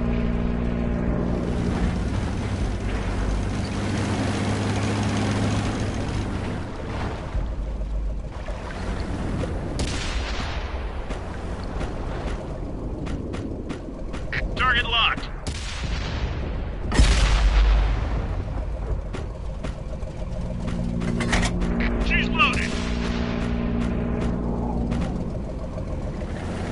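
A heavy tank engine rumbles as the tank drives along.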